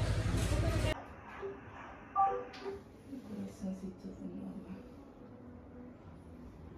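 A woman talks quietly in a small room.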